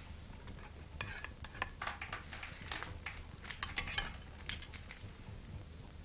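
Dishes clink softly as a man eats.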